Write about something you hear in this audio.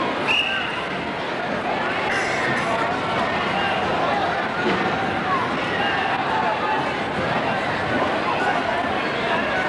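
A man speaks to young wrestlers nearby.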